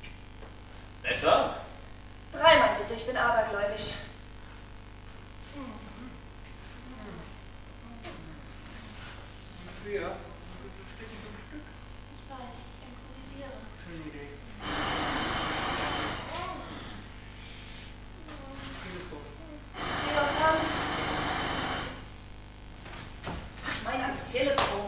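A young woman speaks with emotion, heard from a distance in an echoing hall.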